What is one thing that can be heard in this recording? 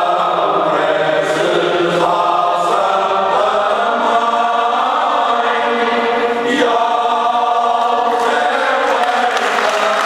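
A choir of elderly men sings together loudly in an echoing hall.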